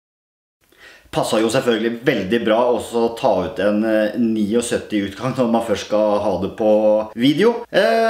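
A man speaks calmly and closely to the listener.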